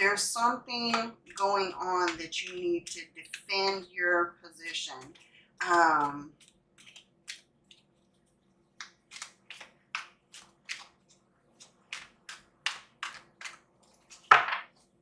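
Playing cards are shuffled with soft flicking taps.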